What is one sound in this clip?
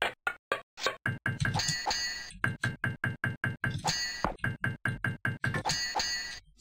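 Swords clash in quick, sharp metallic clinks.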